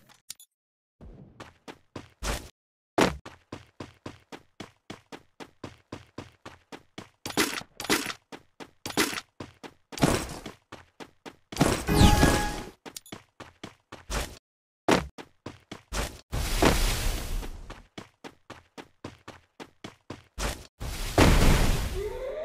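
A game character's footsteps patter quickly on the ground.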